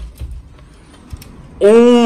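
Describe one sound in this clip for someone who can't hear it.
A door handle clicks as it turns.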